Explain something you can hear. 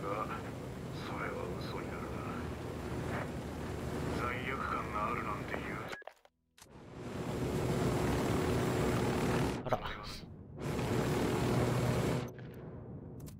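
A helicopter's rotor thuds and roars steadily overhead.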